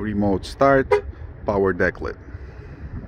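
A car horn chirps twice in quick bursts.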